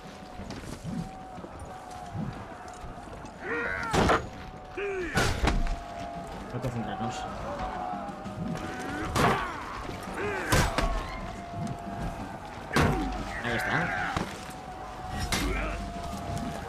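Swords clash and strike in sharp metallic hits.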